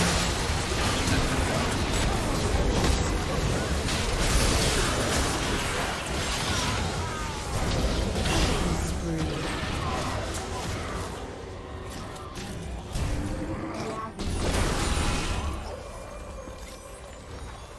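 Spell effects crackle, whoosh and boom in a fast, busy fight.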